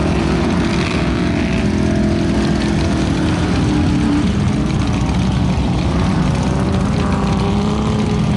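Tyres churn and splash through thick mud.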